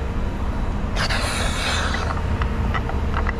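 A fuel cap is unscrewed with a short hiss of air.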